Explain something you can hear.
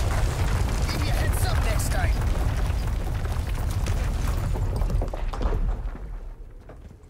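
Rocks rumble and crash down in a deep roar.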